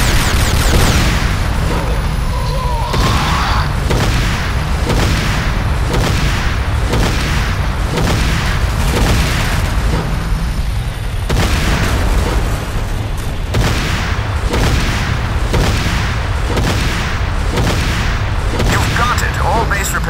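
Shells explode with heavy bangs.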